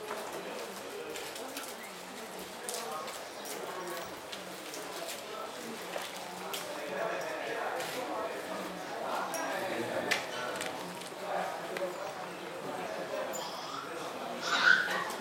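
A crowd of people murmur and chant softly together in an echoing room.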